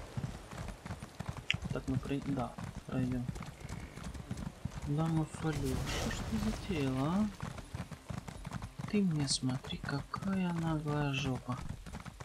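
Horse hooves clop on a stone road.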